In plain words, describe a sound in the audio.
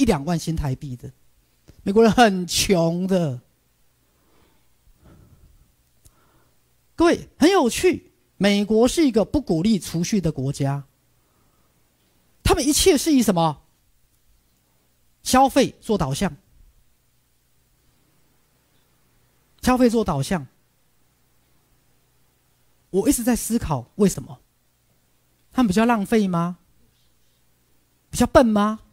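A man speaks with animation through a microphone, in bursts with pauses.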